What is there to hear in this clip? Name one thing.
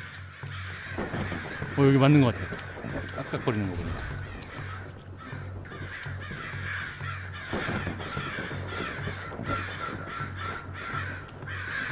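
Footsteps rustle through dry grass at a steady walking pace.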